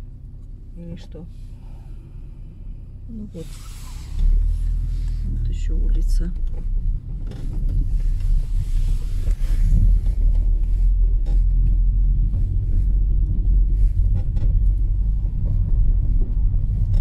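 A car engine rumbles low while driving along a road.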